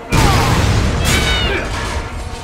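A man shouts urgently up close.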